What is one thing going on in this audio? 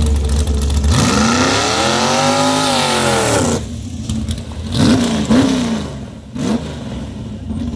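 A dragster engine roars and revs sharply.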